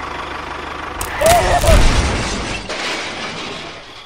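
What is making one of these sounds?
A small wooden bridge cracks and collapses under a toy tractor.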